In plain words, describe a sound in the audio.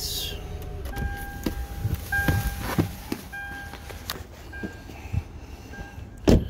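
A car's door-open warning chime dings.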